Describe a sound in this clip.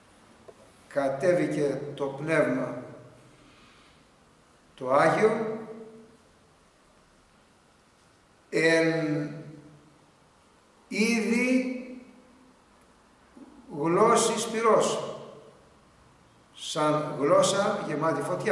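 An elderly man speaks slowly and deliberately close to a microphone, with pauses between phrases.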